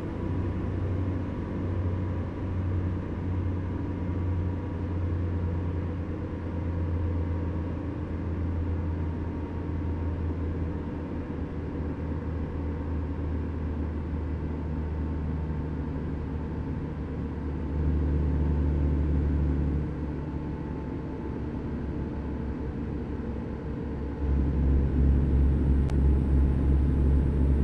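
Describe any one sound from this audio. A truck engine drones steadily while driving, growing louder at times.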